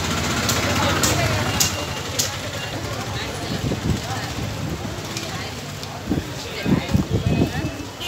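Motorbikes hum past in the street.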